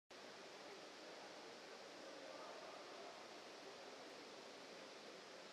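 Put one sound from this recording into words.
A low murmur of voices echoes through a large indoor hall.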